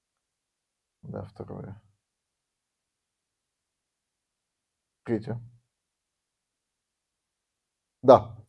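A middle-aged man reads out slowly into a microphone, in short phrases with pauses.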